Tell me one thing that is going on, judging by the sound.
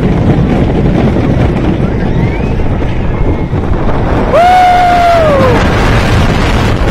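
A roller coaster rumbles and clatters loudly along a wooden track.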